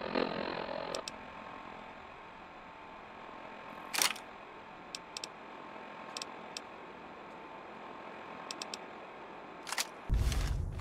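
Short electronic clicks tick now and then.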